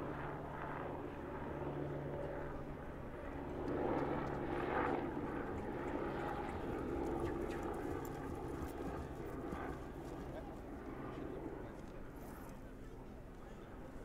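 A horse's hooves thud softly on grass as it walks.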